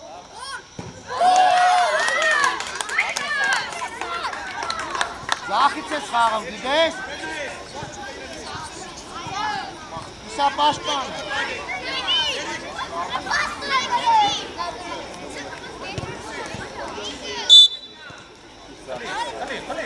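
Young boys shout and cheer excitedly outdoors.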